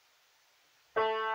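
A piano note rings out.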